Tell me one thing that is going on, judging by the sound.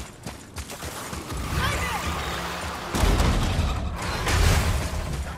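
Heavy footsteps thud quickly on the ground.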